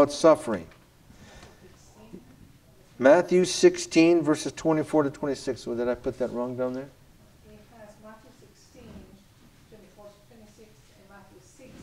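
A middle-aged man speaks into a microphone, preaching with emphasis in a room with a slight echo.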